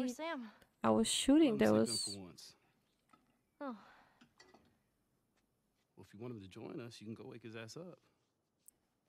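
A man answers calmly.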